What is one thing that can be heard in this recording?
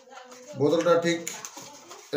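A plastic packet crinkles in a man's hands.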